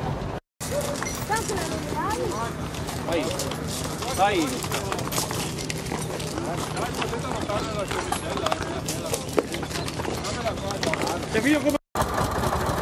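Men talk nearby.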